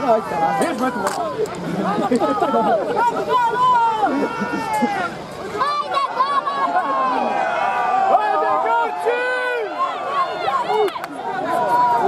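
A crowd of men shouts and cheers outdoors nearby.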